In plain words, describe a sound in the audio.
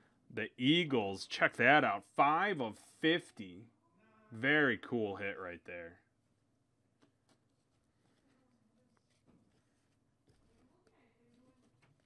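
Trading cards rustle and slide between hands.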